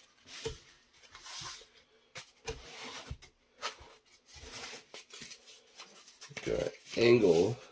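Foam board pieces tap and slide on a table.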